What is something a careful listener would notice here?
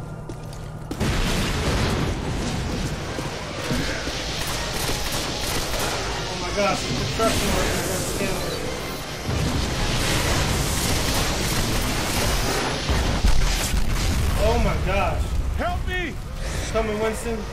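An energy beam crackles and roars loudly.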